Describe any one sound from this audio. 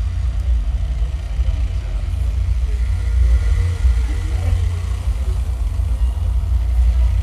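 A live band plays loudly with heavy, booming bass.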